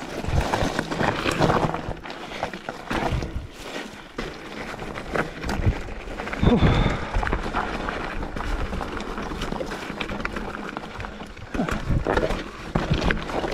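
Bike tyres crunch and rattle over loose rocks.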